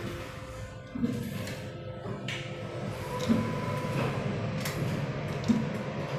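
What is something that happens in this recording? A finger clicks an elevator button.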